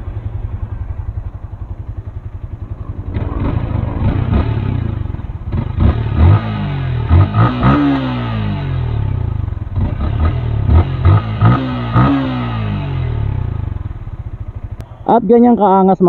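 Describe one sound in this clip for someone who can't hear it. A motorcycle engine idles with a steady, close putter.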